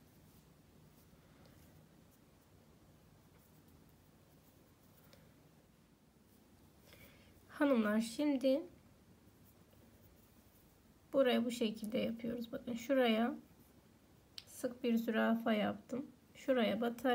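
Thread softly rustles as it is pulled through thin fabric.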